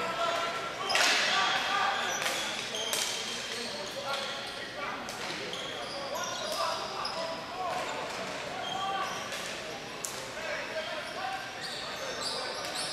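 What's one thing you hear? Hockey sticks clack against a ball and on the floor.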